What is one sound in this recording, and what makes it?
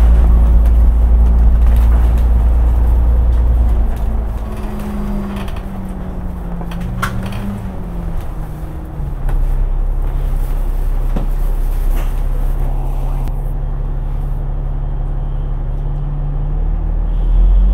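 A bus engine rumbles steadily and changes pitch as the bus drives and slows.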